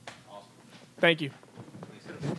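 A young man laughs briefly.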